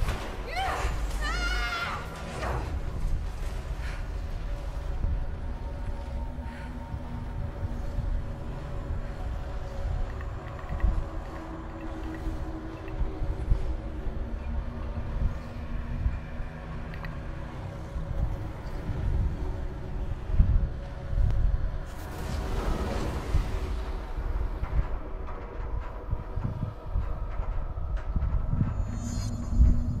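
Heavy concrete blocks grind and rumble as they drift apart.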